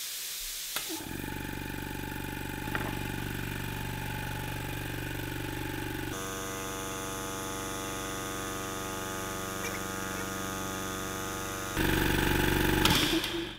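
An air compressor motor runs with a steady hum.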